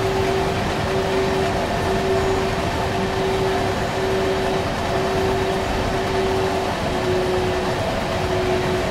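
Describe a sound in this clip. A locomotive hums steadily as a train rolls along the track.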